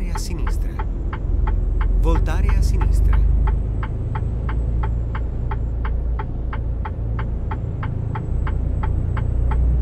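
A turn signal ticks quickly and evenly.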